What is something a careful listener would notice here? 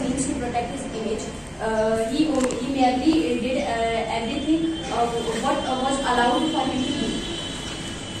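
A young woman speaks clearly into a microphone in a room with some echo.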